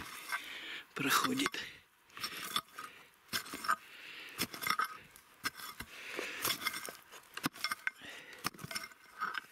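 A small pick chops into soil with dull, scraping thuds.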